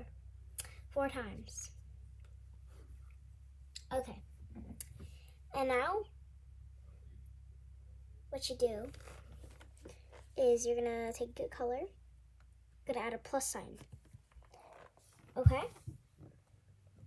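A young girl talks close by, in short bursts with pauses.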